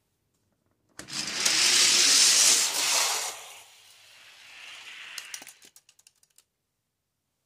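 Small toy cars roll fast down a plastic track with a rushing whir.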